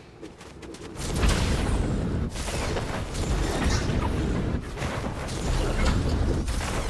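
A jet thruster roars steadily with a rushing hiss.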